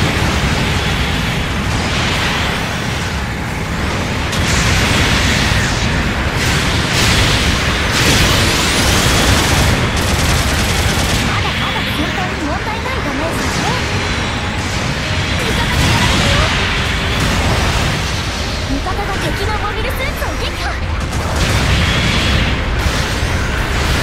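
Mech thrusters roar steadily.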